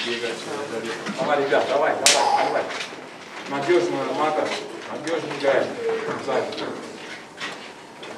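Young men talk among themselves nearby.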